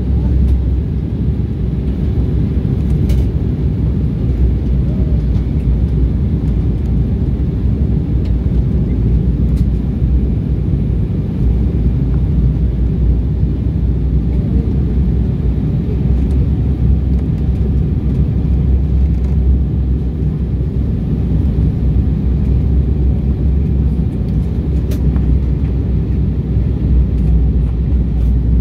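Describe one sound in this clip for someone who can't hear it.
Jet engines roar with a steady, deep rumble inside an airliner cabin.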